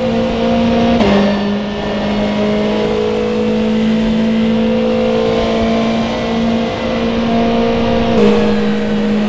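A racing car's gears shift with a brief drop in engine pitch.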